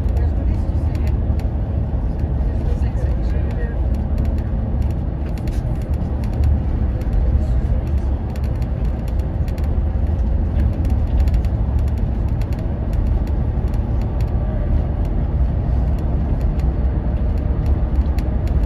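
A bus engine rumbles steadily as it drives along a road.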